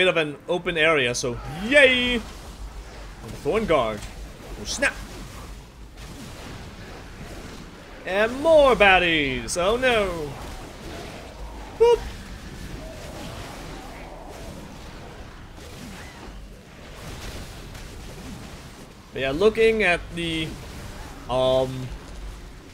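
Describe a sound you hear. A young man talks with animation into a close microphone, in short bursts.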